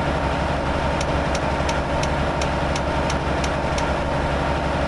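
A turn signal ticks evenly.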